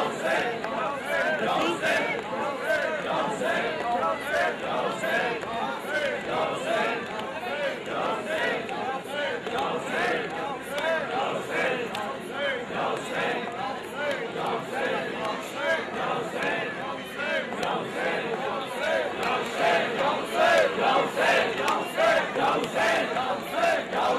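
Many hands slap and clap in rhythm.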